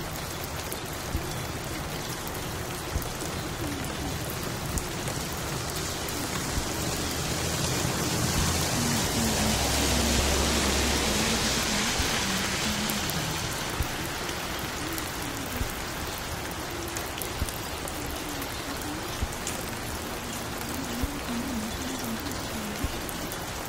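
A vinyl record crackles and pops with a regular click as it turns.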